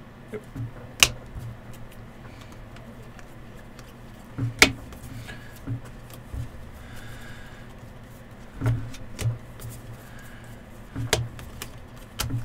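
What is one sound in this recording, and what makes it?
Cards tap and snap as they are flipped and handled.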